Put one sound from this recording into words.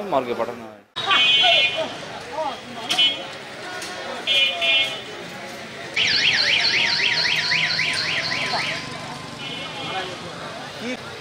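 Vehicle horns honk on a busy street.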